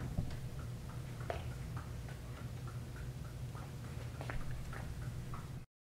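Juggled balls softly slap into a man's hands.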